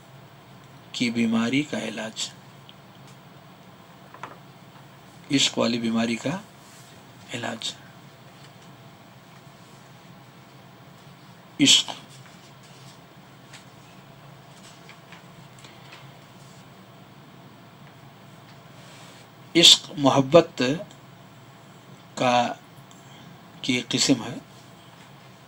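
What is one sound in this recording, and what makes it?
An elderly man speaks slowly into a headset microphone, with long pauses.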